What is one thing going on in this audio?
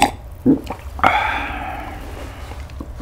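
A glass clinks and rings briefly.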